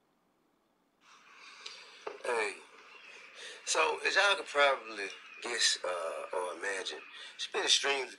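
A man speaks forcefully into a microphone.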